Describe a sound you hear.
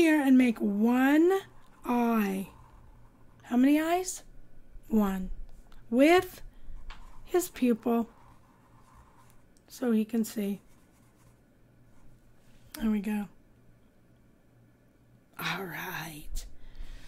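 An elderly woman talks with animation through a headset microphone, in short bursts.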